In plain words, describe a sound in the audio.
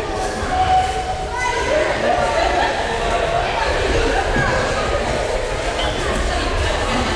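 Children and adults chatter in a large echoing hall.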